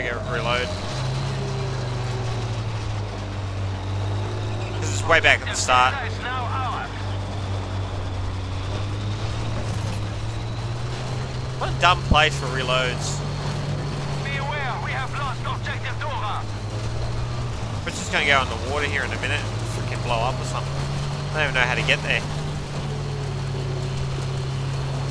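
A heavy tank engine rumbles steadily and revs up and down.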